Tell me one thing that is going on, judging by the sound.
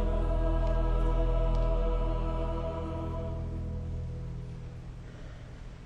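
A choir sings a sustained chord that fades away in a large echoing hall.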